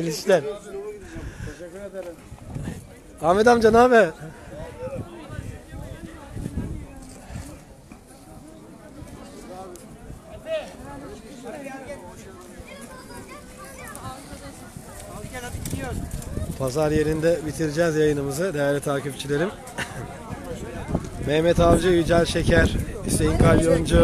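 Men talk loudly close by, outdoors.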